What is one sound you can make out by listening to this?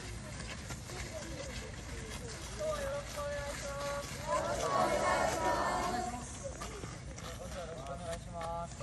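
A crowd of children chatter and shout outdoors.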